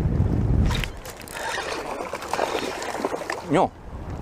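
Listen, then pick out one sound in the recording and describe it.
Shallow water laps and splashes.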